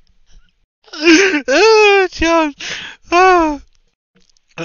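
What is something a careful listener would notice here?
A young man shouts with animation over an online call.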